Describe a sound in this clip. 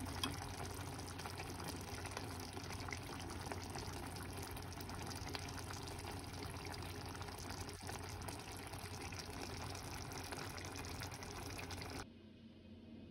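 A pot of stew bubbles and simmers.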